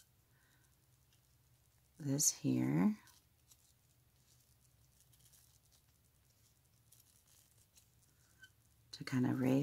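Scissors snip through lace.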